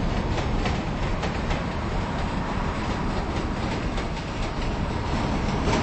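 A train's doors slide open.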